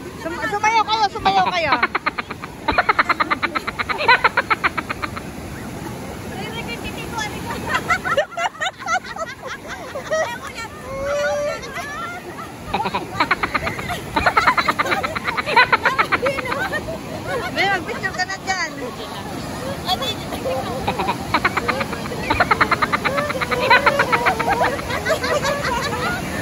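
Waves wash onto the shore in the distance.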